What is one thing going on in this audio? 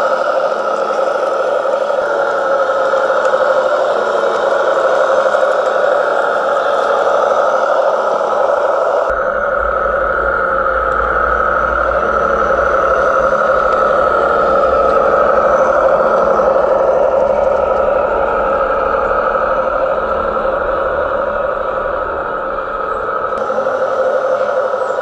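A small toy tractor's electric motor whines steadily.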